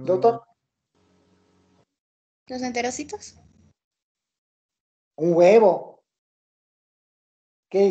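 An elderly man speaks in short bursts over an online call.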